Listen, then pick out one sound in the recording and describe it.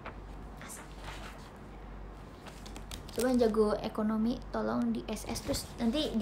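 Paper rustles as sheets are handled.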